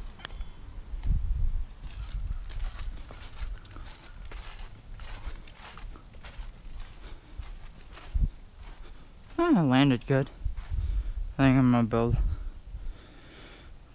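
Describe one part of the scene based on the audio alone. Footsteps swish through grass.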